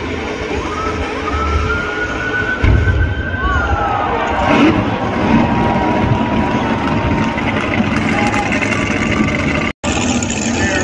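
A car engine revs loudly as tyres spin.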